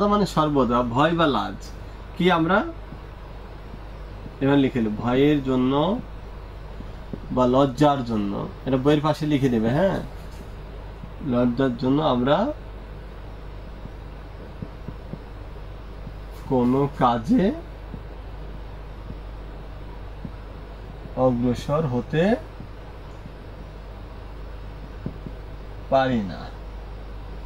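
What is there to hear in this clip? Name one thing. A man speaks calmly in short phrases, close by.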